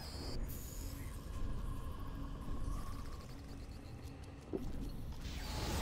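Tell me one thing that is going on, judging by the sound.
Flames roar and crackle in a burning trail of fire.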